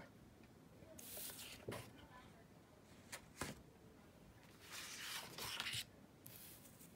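A paper card slides and rustles across a table.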